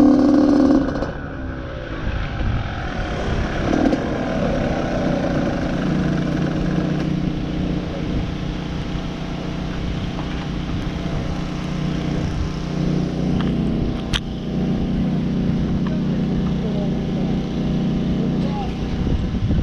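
A motorbike engine idles and putters close by.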